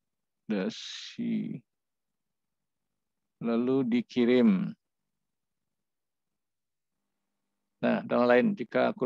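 A young man speaks calmly over an online call, in short bursts with pauses.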